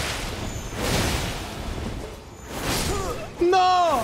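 Swords clash and slash in a fierce fight.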